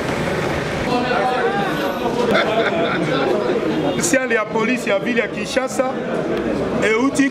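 A man speaks calmly and close up into a microphone.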